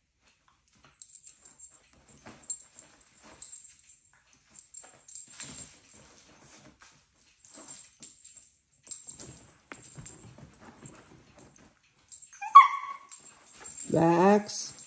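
Dogs' paws scuffle and patter on a hard floor.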